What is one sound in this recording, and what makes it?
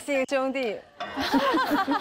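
Young women laugh together close by.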